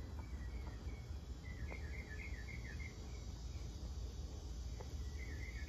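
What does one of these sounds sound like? A small fire burns with a soft roar and occasional crackles.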